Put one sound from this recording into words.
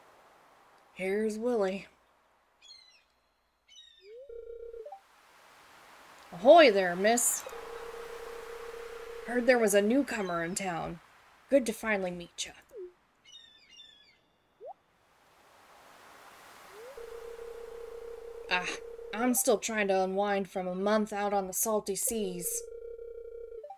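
A young woman talks animatedly close to a microphone.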